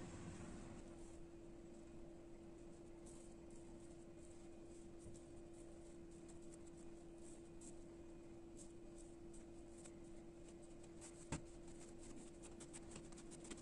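Fingers softly press and pinch dough.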